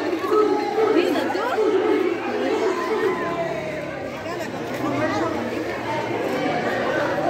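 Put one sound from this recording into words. A crowd of men and women shout and talk excitedly nearby, outdoors.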